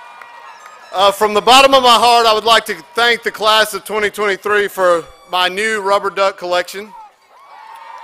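A middle-aged man speaks loudly and with emphasis into a microphone over a loudspeaker.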